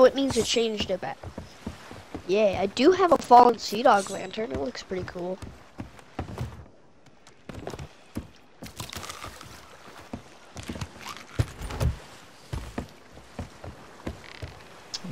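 Footsteps knock on wooden boards.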